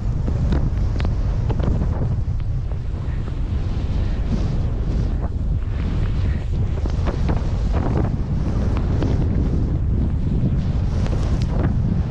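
Skis hiss and swish through deep snow.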